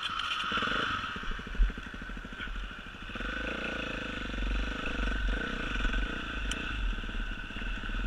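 A motorbike engine buzzes steadily while riding along a dirt trail.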